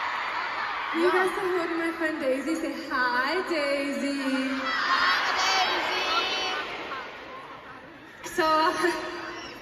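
A woman sings through loud speakers in a large echoing arena.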